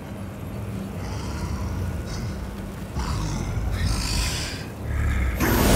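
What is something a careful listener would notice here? A magical energy surges and roars in bursts, growing louder.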